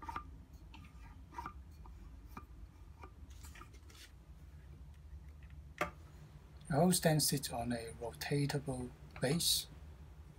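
Small metal parts click and tap as they are fitted together by hand.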